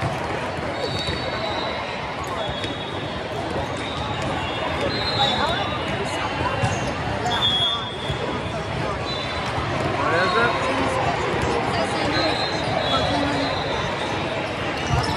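A crowd chatters loudly in a large echoing hall.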